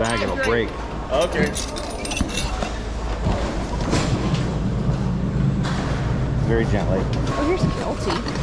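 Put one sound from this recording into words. Plastic and metal items clatter as hands sort through them.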